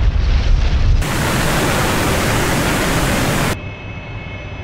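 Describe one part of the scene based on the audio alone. A rocket motor roars.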